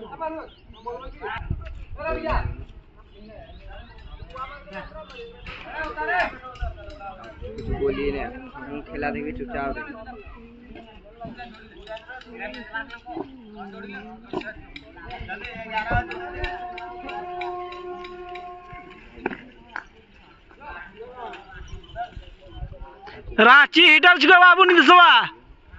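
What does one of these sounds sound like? Young boys call out and shout to each other outdoors.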